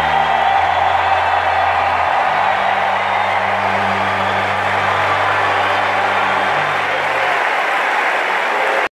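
A singer performs through loudspeakers that echo around the arena.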